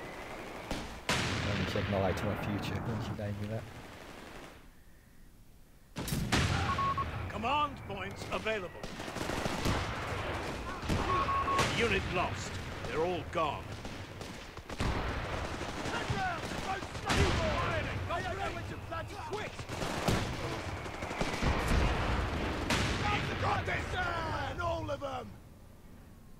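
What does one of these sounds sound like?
Rifles and machine guns fire in bursts.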